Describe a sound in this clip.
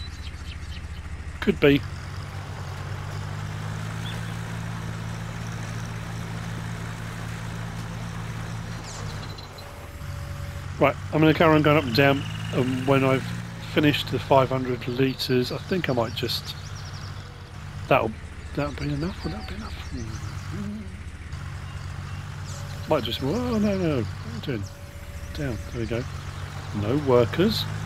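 A tractor engine chugs steadily at a low pitch.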